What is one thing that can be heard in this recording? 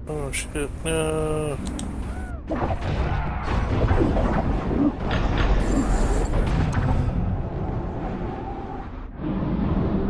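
Magic blasts crackle and burst in a fast fight.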